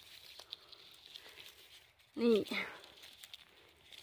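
A mushroom stem snaps softly as it is picked.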